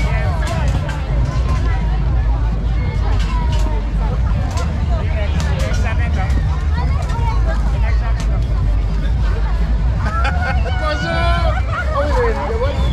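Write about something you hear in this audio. A large crowd chatters all around outdoors.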